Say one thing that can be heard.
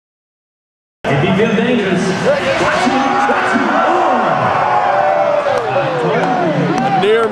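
A crowd cheers and shouts in a large echoing arena.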